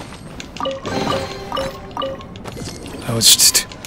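Bright chimes ring out as a treasure chest opens.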